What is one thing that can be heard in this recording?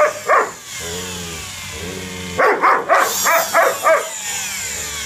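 A dog yowls and howls in short, bending bursts close by.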